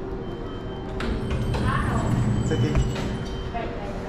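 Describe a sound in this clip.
Elevator doors slide open with a low rumble.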